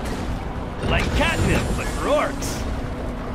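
A magical whoosh bursts out as a barricade is built.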